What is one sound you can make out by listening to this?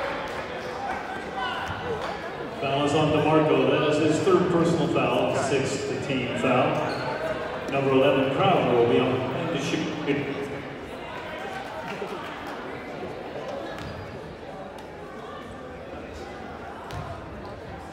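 A crowd of spectators murmurs and chatters in a large echoing gym.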